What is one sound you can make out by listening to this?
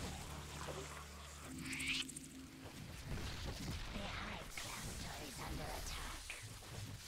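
Alien creatures screech and snarl in a fight.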